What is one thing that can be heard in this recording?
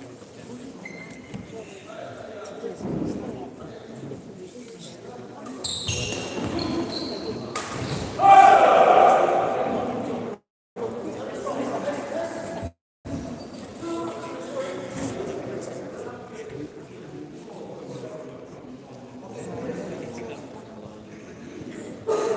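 Badminton rackets strike a shuttlecock back and forth.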